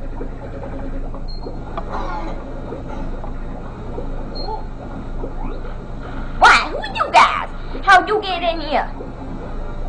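Quiet video game music plays through a television speaker.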